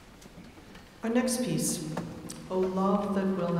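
A large choir sings in a vast echoing hall.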